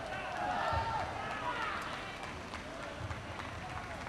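Young men cheer and shout in celebration.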